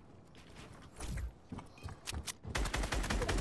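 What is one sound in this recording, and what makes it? A pickaxe knocks against wood.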